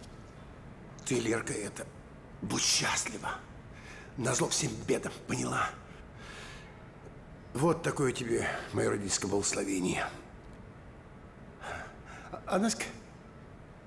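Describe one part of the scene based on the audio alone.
A middle-aged man speaks close by in a tense, urgent voice.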